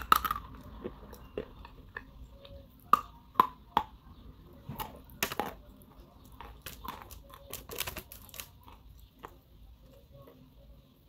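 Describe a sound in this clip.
Something crunchy is bitten and chewed loudly, very close by.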